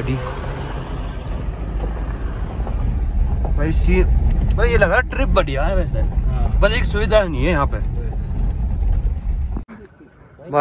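A car engine rumbles as the car drives along a rough road.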